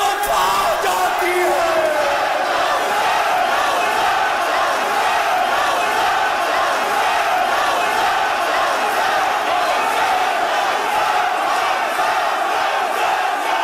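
A man sings loudly and with passion.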